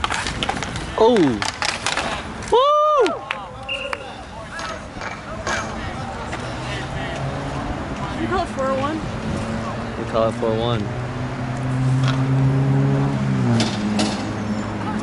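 Men shout to each other across an outdoor rink.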